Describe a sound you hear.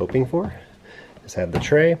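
A hand knocks against a hard plastic tray.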